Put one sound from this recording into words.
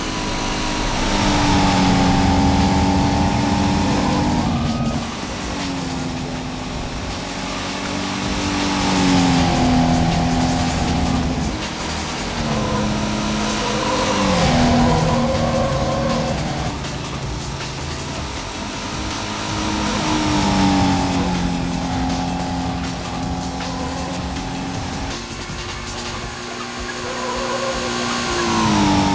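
A car engine revs hard and whines, its pitch rising and dropping with each gear change.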